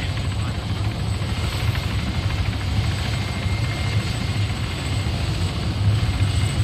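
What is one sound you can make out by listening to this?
A helicopter's rotor thumps loudly and steadily close by.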